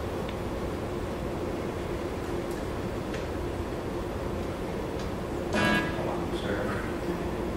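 A guitar is strummed in steady chords.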